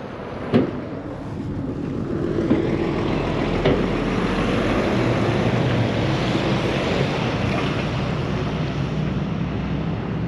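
A heavy lorry rumbles past with a low engine drone.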